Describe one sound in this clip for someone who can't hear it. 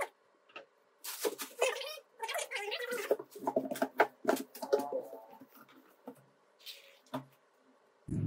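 Cardboard flaps scrape and thump as a box is handled.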